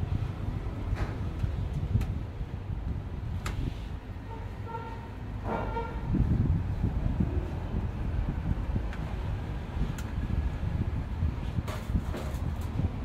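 Metal tools click and tap against a machine part.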